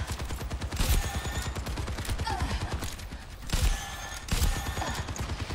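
Loud rifle shots ring out in short bursts.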